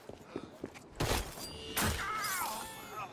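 Heavy punches thud in a scuffle.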